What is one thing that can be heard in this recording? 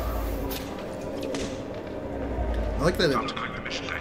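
Sparks crackle and fizz from a wall panel.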